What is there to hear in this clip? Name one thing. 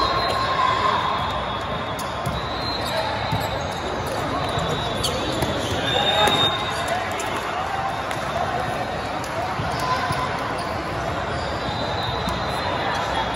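Crowd chatter fills a large echoing hall.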